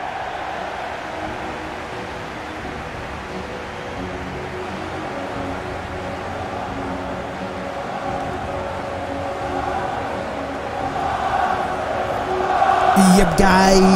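A large stadium crowd roars and chants, growing louder.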